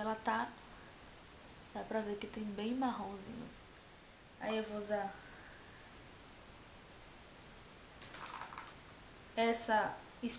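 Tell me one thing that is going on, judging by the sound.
A young woman talks close to the microphone, in short bursts with pauses.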